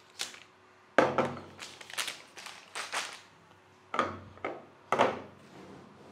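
Hard drives knock down onto a table.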